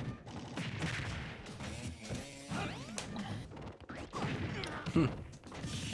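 Game fighters land punchy hit effects with whooshes.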